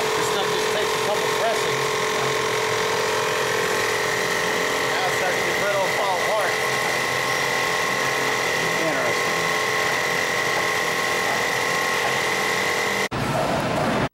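A machine hums and whines steadily.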